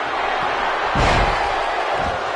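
A heavy body slams onto a wrestling mat with a thud.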